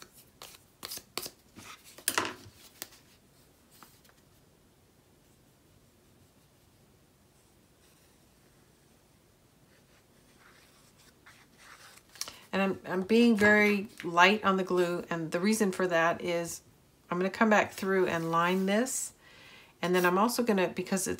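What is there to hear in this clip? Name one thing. Paper rustles and taps as it is handled.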